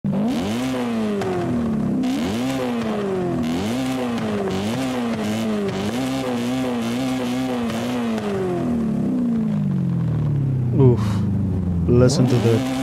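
A race car engine revs up and down again and again, then settles into a low rumble.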